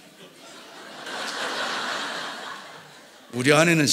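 An older man laughs softly.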